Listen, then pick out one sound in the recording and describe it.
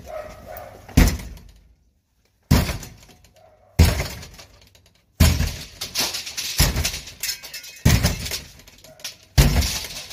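A battering ram slams heavily against a front door, again and again.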